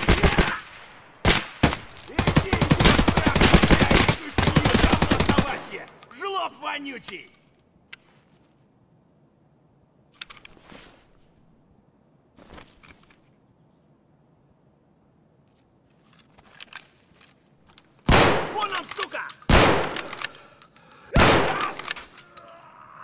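A rifle fires rapid, loud bursts of gunshots.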